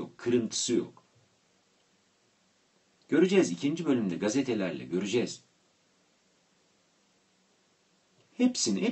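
A middle-aged man speaks calmly into a microphone over an online call.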